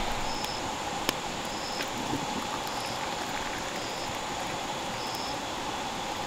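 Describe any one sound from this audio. Hot water pours from a kettle into a cup.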